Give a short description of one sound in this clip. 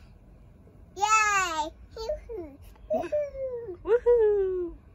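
A toddler girl babbles and squeals close by.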